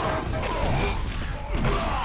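A rocket explodes with a loud blast.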